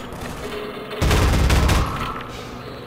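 A weapon fires with a loud, booming burst.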